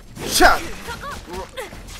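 A sword strikes with a sharp metallic impact.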